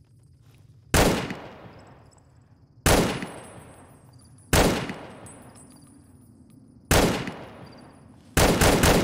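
A rifle fires single loud shots that echo away.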